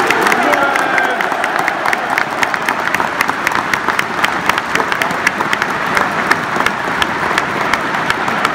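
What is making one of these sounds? A large stadium crowd chants loudly outdoors.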